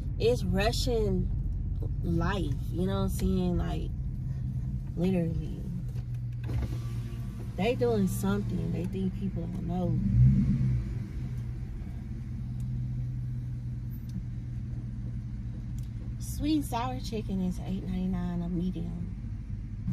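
A car engine hums low and steady inside a car.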